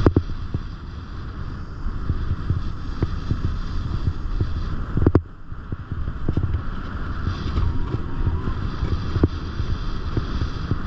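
Wind rushes past in low gusts.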